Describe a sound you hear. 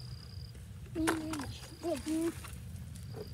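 A young boy speaks briefly up close.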